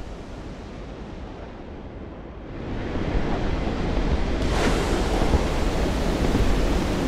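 A propeller plane's engine roars steadily, rising as the plane dives.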